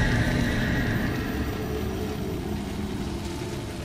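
Flames crackle softly nearby.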